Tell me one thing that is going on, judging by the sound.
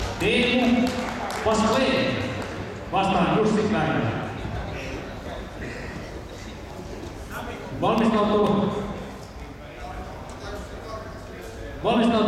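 A man shouts instructions loudly from close by.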